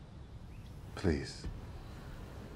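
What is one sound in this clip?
A young woman says something softly and briefly, close by.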